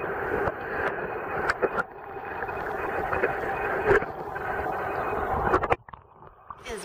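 Underwater, water rumbles and gurgles close by.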